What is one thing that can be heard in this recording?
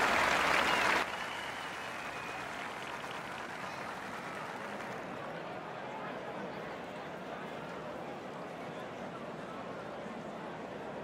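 A crowd murmurs softly.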